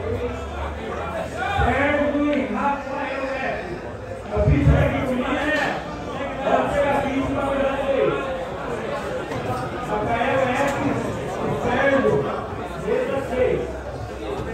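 A crowd murmurs around a large room.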